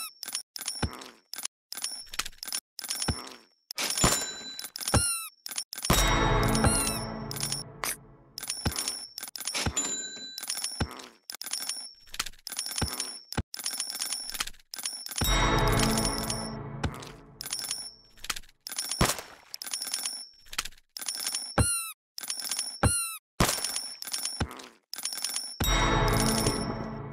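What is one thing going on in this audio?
Rapid game clicks and coin chimes ring out over and over.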